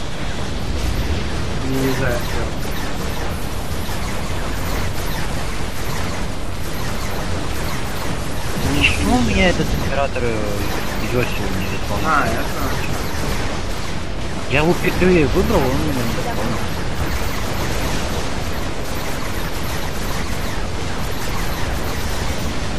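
Electric zaps crackle from laser beams.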